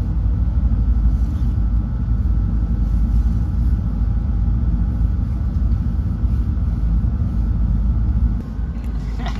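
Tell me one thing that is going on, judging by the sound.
A cat purrs loudly and steadily, close by.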